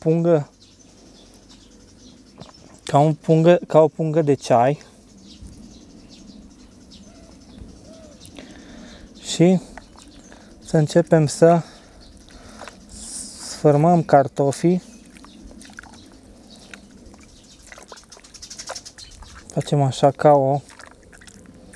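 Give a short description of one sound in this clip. Water sloshes and drips as a wet cloth bag is squeezed in a bucket.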